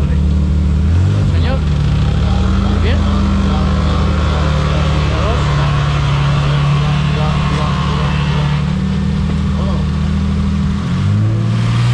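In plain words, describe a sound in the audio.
A rally car engine idles with a deep, rough rumble nearby.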